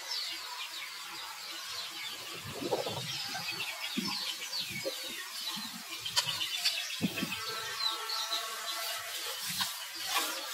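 A baby monkey squeals with high, short cries.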